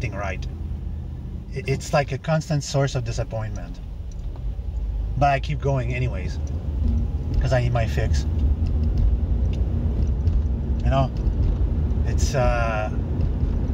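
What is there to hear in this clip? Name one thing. A car engine hums low and steadily inside the car.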